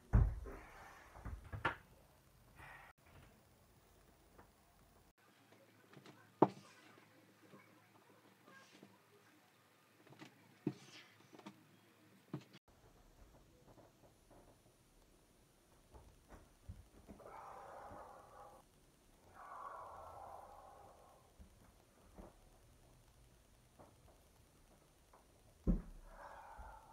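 Bare feet thump on a wooden floor.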